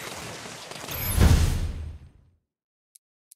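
A game explosion booms loudly and fades.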